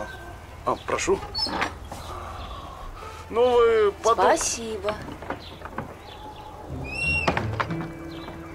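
A wooden gate creaks open and shut.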